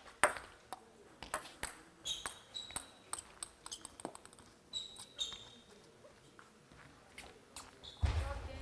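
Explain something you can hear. A ping-pong ball clicks back and forth off paddles and a table in a quick rally.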